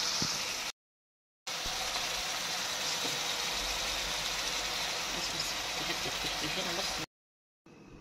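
Stew bubbles and sizzles steadily in a pan.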